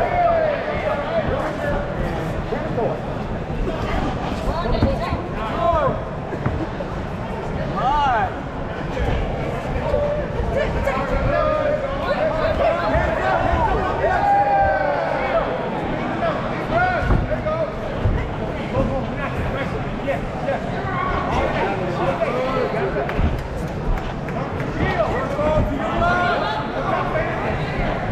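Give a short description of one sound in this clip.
A crowd of spectators shouts and cheers throughout, echoing in a large hall.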